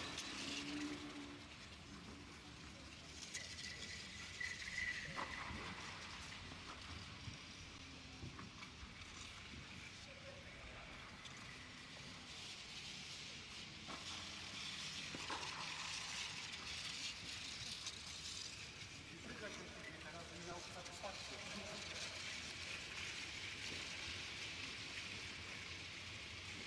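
Footsteps scuff softly on a clay court in a large echoing hall.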